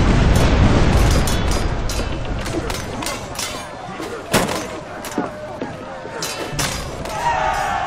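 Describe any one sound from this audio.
Swords clash and clang in quick strikes.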